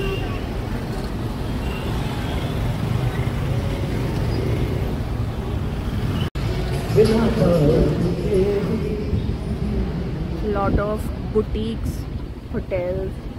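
Motor scooters and cars rumble by in busy street traffic.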